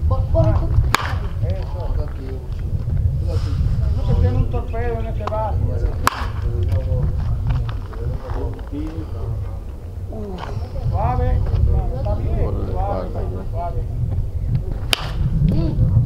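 A baseball bat cracks against a pitched ball.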